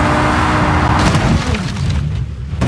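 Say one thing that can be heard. A car crashes hard with crunching metal.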